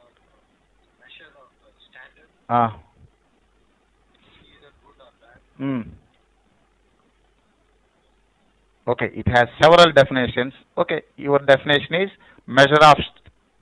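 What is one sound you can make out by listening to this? A man speaks calmly into a close microphone, in pauses.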